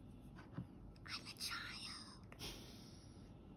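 A young girl speaks close by, with a grumbling tone.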